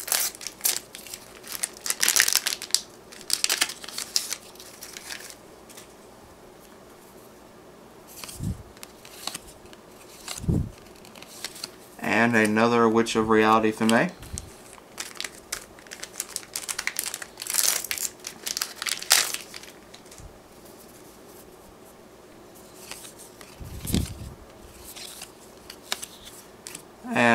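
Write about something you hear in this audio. Trading cards rustle and slide against each other as hands shuffle them.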